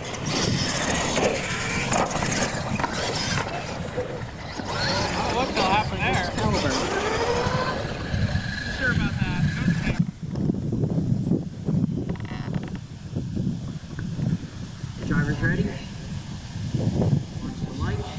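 Small electric motors whine as toy trucks drive over dirt.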